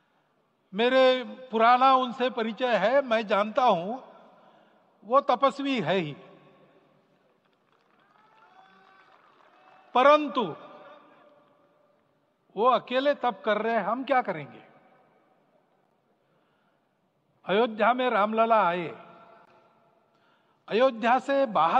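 An elderly man speaks forcefully in bursts through a microphone, echoing outdoors.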